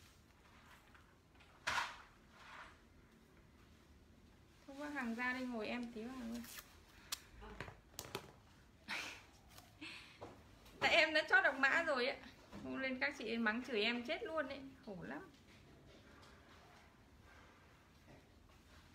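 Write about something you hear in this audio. Cloth rustles as a garment is handled.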